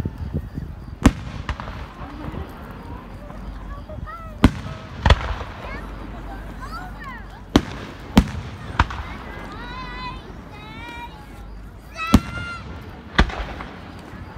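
Fireworks explode with loud, sharp bangs that echo.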